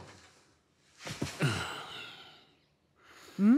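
A man sighs heavily.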